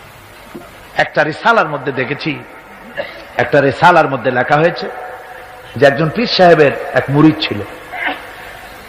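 An elderly man preaches with fervour into a microphone, heard through a loudspeaker.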